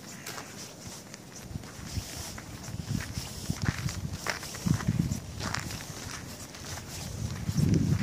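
Wind gusts outdoors and buffets the microphone.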